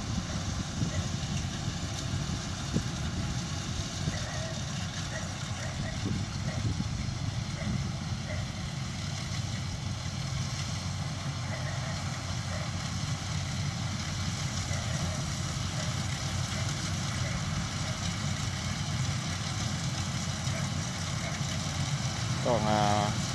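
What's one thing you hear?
A combine harvester's engine rumbles steadily close by.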